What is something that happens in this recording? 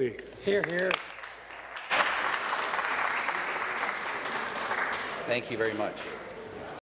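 A man speaks through a microphone in a large echoing hall.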